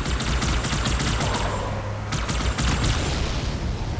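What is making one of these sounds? An energy blast erupts with a loud crackling roar.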